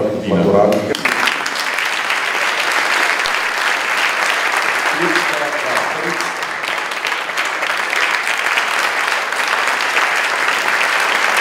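A crowd claps and applauds steadily.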